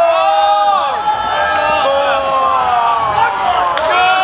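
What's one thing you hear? A band plays music loudly outdoors.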